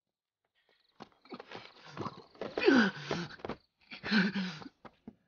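A young man groans and cries out with strain, close by.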